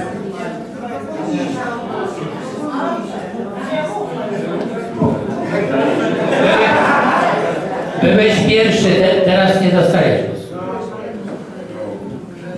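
Several men and women talk over one another in the background.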